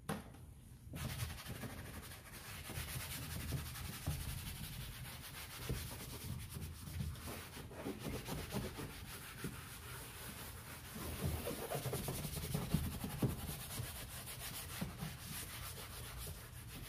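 A scrubbing pad rubs back and forth on a plastic panel.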